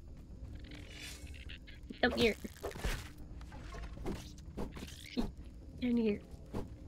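A sword swings and strikes with sharp hits.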